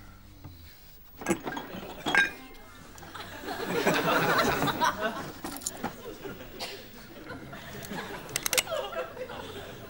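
Objects clatter and knock as a man rummages in a bedside cabinet.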